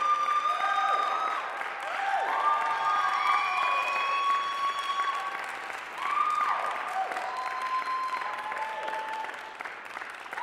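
An electric guitar plays sustained, gliding notes through an amplifier in a large echoing hall.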